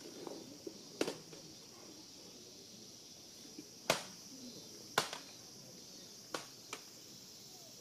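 Wooden swords clack sharply together outdoors.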